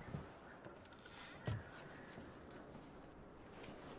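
A wooden lid creaks open.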